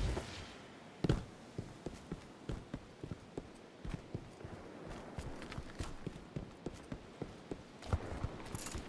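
Footsteps crunch steadily over grass and stone.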